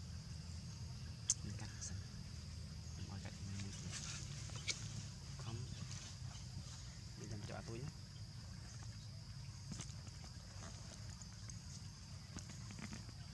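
A baby monkey shuffles over dry leaves and grass.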